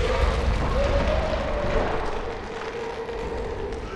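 A large creature's clawed foot lands on a stone floor with a thud.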